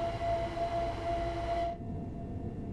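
A passing train hums loudly nearby, then cuts off abruptly.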